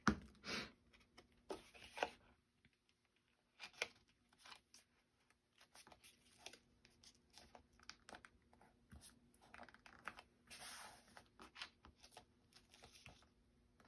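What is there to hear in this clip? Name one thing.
Paper rustles and crinkles under pressing hands.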